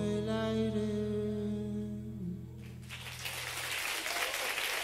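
A guitar chord rings out and fades.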